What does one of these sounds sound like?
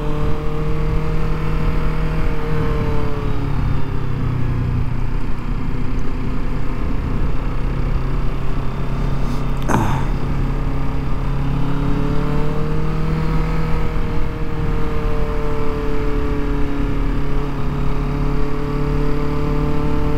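Wind rushes past as the motorcycle rides.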